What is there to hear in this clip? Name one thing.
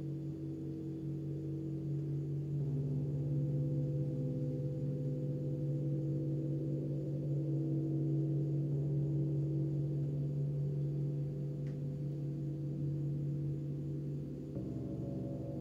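Large gongs hum and shimmer with deep, steady, swelling tones.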